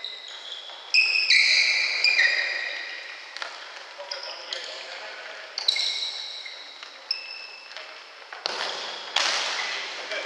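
A ball is kicked with dull thuds that echo.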